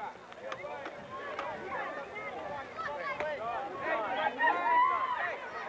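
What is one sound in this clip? A crowd of young girls cheers and shouts outdoors.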